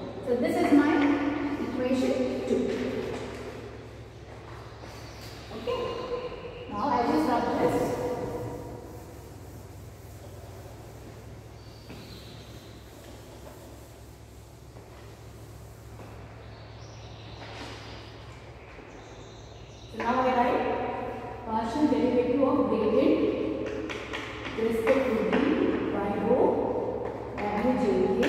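A woman speaks steadily, explaining as if lecturing.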